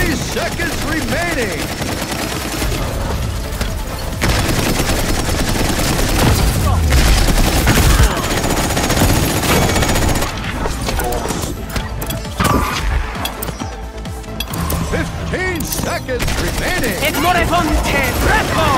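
Energy guns fire rapid bursts of shots.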